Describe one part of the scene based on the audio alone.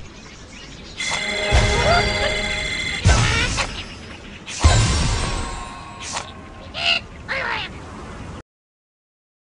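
Bright jingles ring out as stars are awarded.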